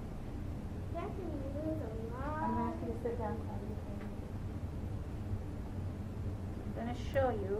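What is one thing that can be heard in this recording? A middle-aged woman speaks calmly through a face mask, close by.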